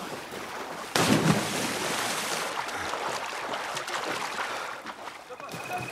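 Water splashes and churns as someone swims.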